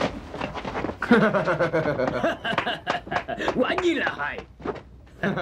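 An older man laughs loudly.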